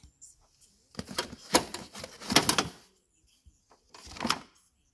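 Tools and cables clatter as a hand moves them about.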